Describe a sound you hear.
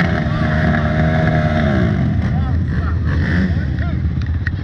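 A quad bike engine revs up and down.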